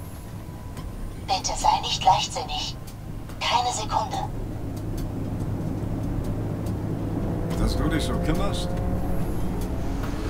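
A car engine hums steadily, slowly building.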